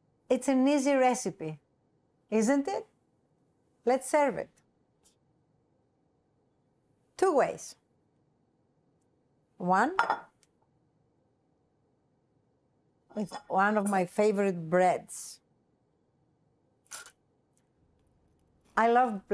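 A woman speaks with animation into a close microphone, in short bursts with pauses.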